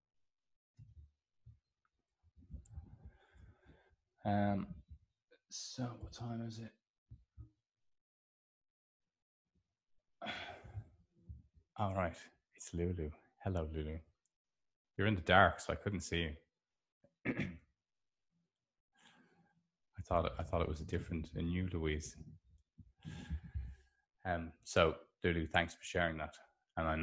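A middle-aged man speaks calmly and closely into a microphone, with pauses.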